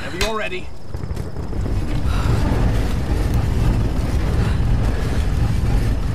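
A heavy wooden crank turns with a low, steady grinding rumble.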